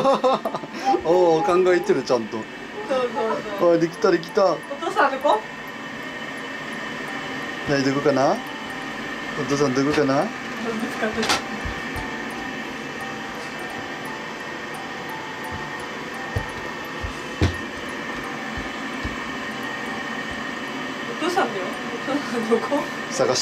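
A young woman talks and laughs playfully nearby.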